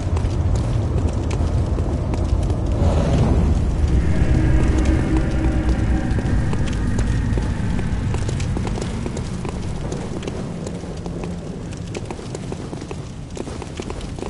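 Footsteps run over cobblestones.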